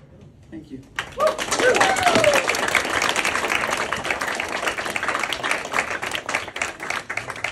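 An audience claps and applauds loudly.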